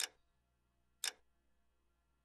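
A short menu click sounds once.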